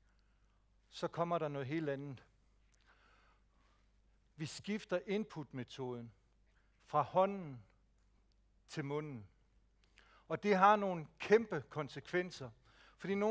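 A middle-aged man speaks to an audience through a microphone, in short bursts with pauses.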